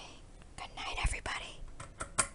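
A lamp switch clicks.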